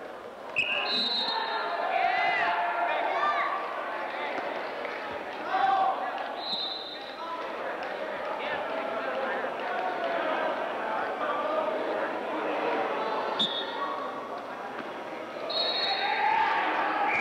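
Wheelchair tyres squeak sharply on a hard floor.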